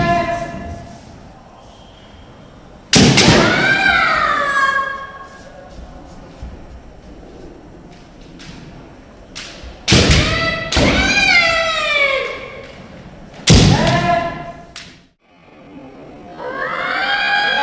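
Kendo fighters shout loud, drawn-out battle cries that echo through a large hall.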